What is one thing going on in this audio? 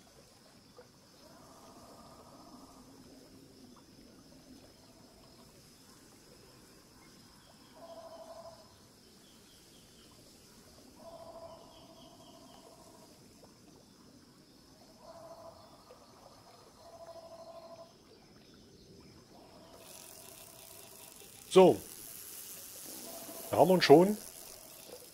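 Water laps gently at the shore of a calm lake.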